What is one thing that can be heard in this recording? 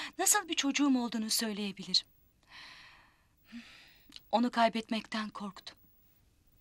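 A woman speaks sharply and close by.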